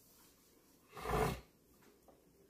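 A middle-aged man sniffs loudly.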